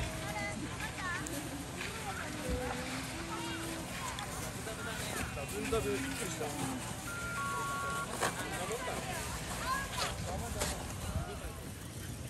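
A crowd of children and adults chatters and calls out outdoors.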